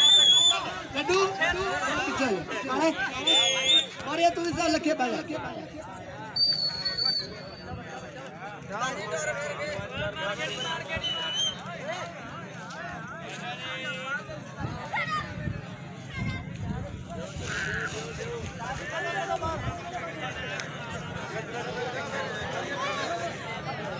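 A large outdoor crowd of men chatters and shouts.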